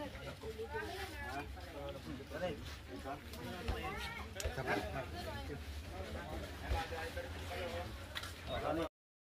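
Young men and women chat and talk over each other close by.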